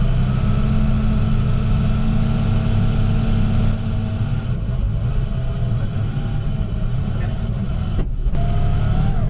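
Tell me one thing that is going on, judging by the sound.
A truck's diesel engine rumbles steadily close by.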